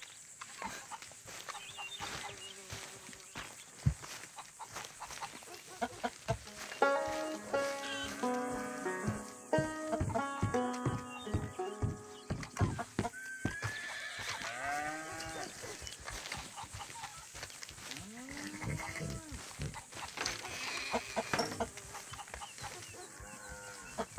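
Footsteps crunch through dry grass and dirt.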